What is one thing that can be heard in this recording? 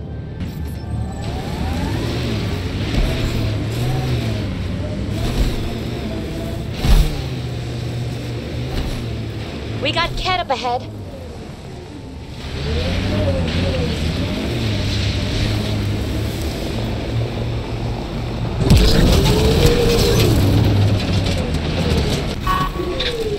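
A vehicle's wheels crunch and bump over ice and rock.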